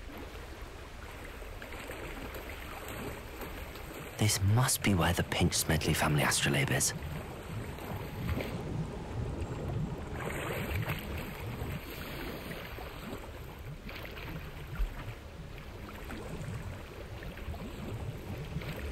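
Water splashes steadily as a swimmer strokes through a lake.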